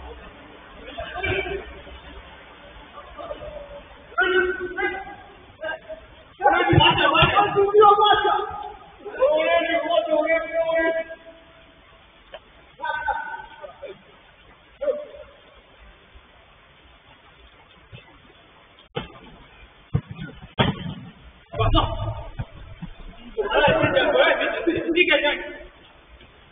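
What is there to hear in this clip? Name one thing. Young men shout to each other across an indoor pitch.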